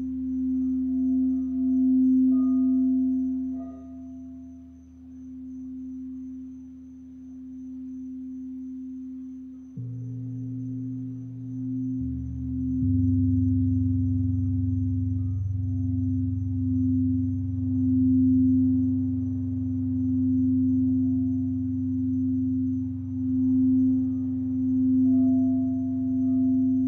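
A singing bowl rings with a steady, wavering hum.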